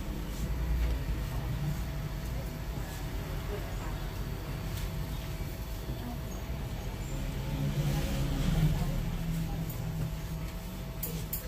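Electric hair clippers buzz steadily nearby.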